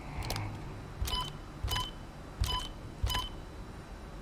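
Short electronic beeps sound from a computer terminal.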